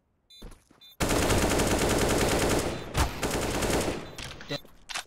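A rifle fires in a rapid burst, loud and close.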